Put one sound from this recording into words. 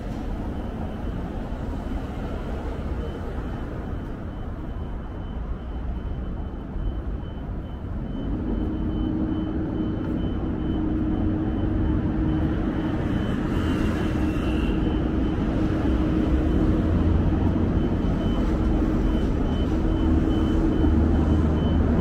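Distant city traffic rumbles steadily outdoors.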